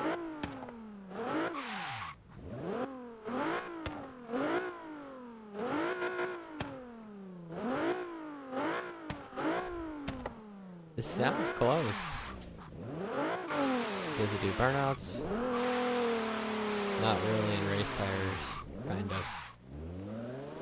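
A sports car engine revs hard, rising and dropping in pitch again and again as it shifts gears.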